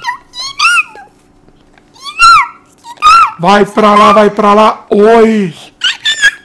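A young child shouts and squeals excitedly, close by.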